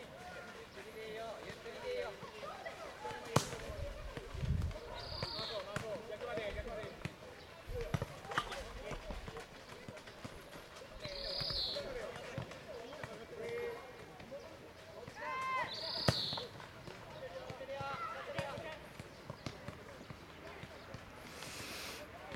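Children shout to each other across an open field outdoors.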